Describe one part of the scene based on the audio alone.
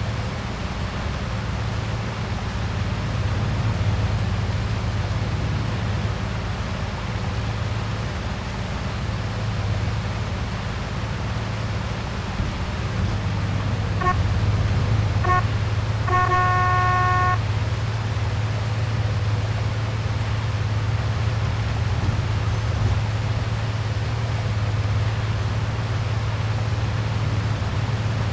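Rain patters down steadily.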